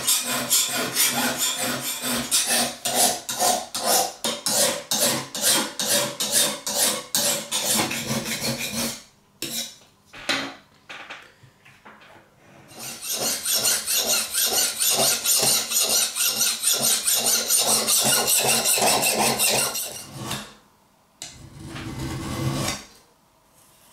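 A metal file rasps back and forth across a knife blade in quick, steady strokes.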